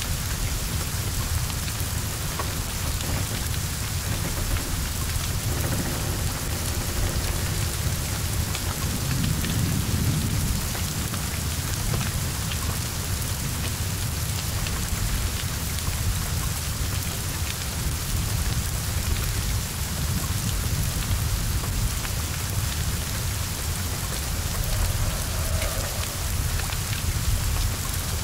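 Flames roar and crackle from a burning car.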